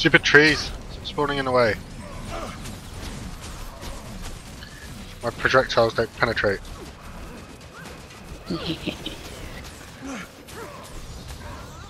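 Magic blasts crackle and burst during a fight.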